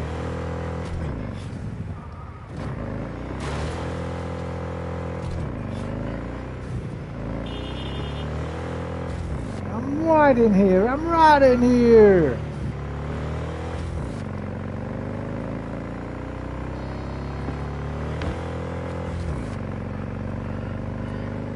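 A motorcycle engine hums steadily and rises and falls in pitch.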